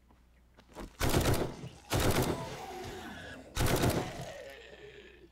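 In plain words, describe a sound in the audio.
A rifle fires a few loud shots that echo briefly.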